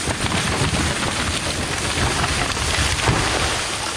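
A tree creaks and crashes to the ground.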